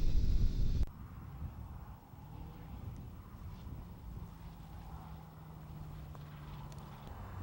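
A light aircraft engine hums from a distance.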